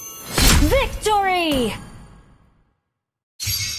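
A triumphant game fanfare plays with a rising sweep.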